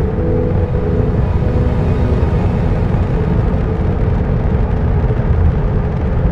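Spaceship engines roar with a deep, steady rumble.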